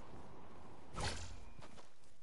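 A character lands on the ground with a thud.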